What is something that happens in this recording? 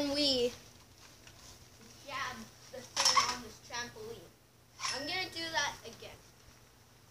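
A young boy talks nearby.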